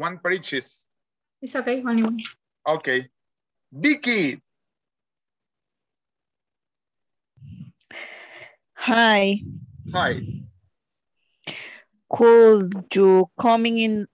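A man speaks with animation over an online call, with pauses.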